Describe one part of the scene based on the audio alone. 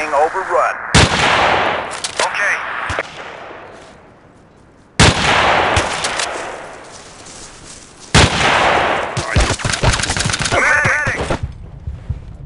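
A sniper rifle fires loud single shots that echo away.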